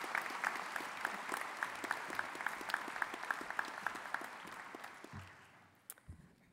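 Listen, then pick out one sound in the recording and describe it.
An audience applauds in a large hall, fading out.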